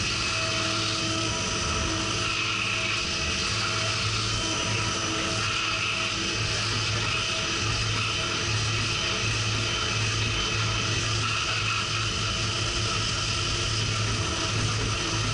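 A milling machine cuts metal with a steady whirring grind.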